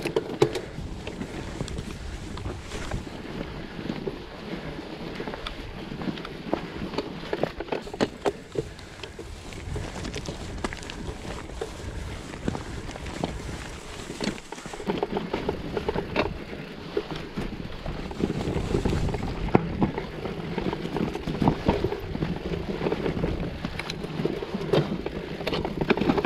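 A bicycle frame clatters and knocks over bumps.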